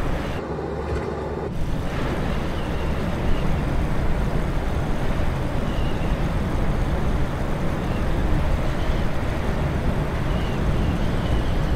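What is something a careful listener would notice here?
A small propeller plane's engine drones steadily.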